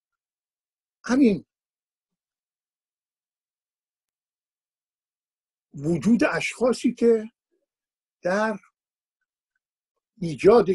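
An elderly man speaks calmly and haltingly into a microphone, with long pauses.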